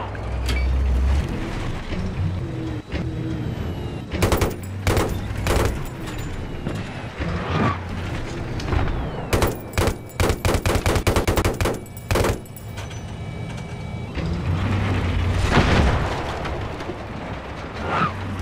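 A heavy tank engine rumbles low and steadily.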